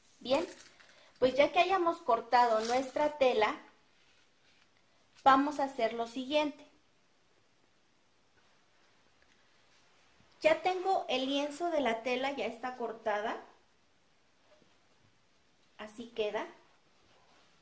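A young woman speaks calmly and close by, explaining.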